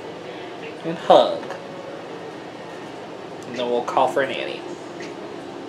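A young woman speaks briefly and animatedly into a microphone.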